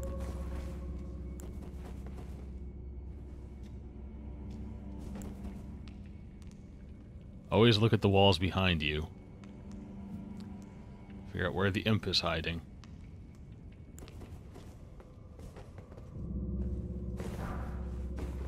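Footsteps tread on stone in an echoing passage.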